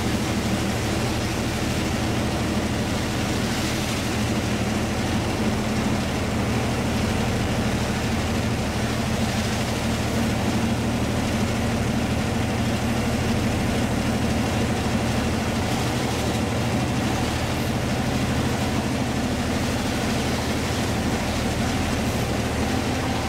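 Train wheels rattle and clatter along the rails.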